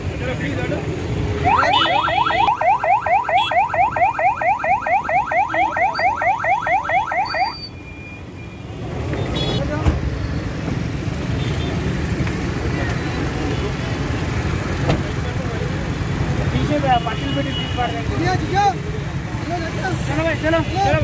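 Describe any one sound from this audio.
Traffic rumbles steadily in the background.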